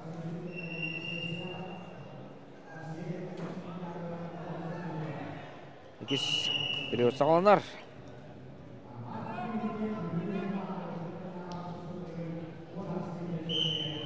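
A large crowd murmurs in an echoing hall.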